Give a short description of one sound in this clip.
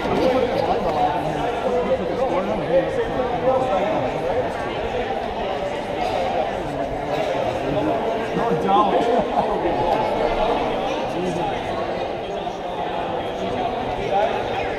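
A crowd chatters throughout a large echoing gym.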